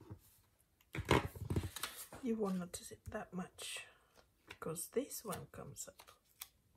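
Sheets of paper rustle as they are laid on a table.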